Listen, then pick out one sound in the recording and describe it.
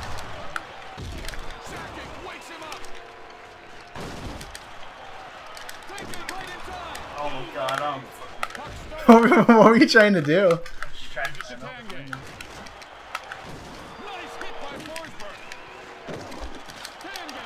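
Hockey sticks clack against a puck in an arcade game, with short sharp hits.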